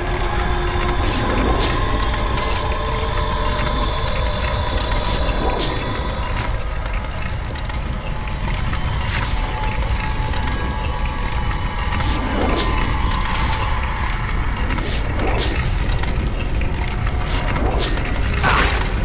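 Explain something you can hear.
Short whooshing and zapping sound effects ring out again and again.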